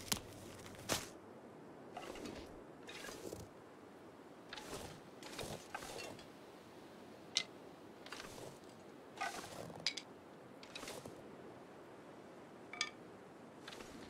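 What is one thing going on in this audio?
Footsteps crunch steadily through deep snow.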